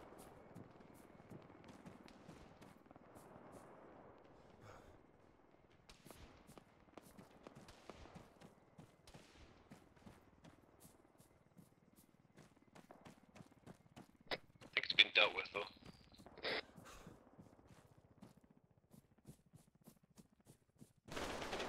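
Footsteps rustle through tall grass at a steady pace.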